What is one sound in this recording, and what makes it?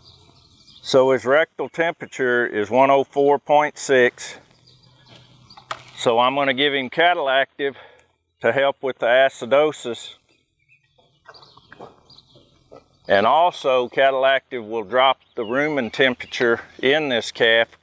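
A middle-aged man speaks calmly and close, heard through a microphone.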